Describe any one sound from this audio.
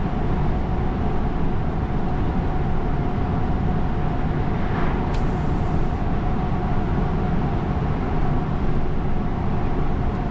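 A car engine hums steadily with loud road and tyre rumble heard from inside the car.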